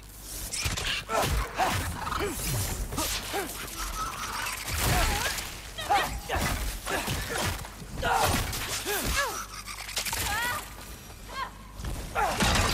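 Small creatures screech and shriek during a fight.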